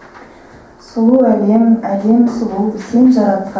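A young woman sings into a microphone, heard through a loudspeaker.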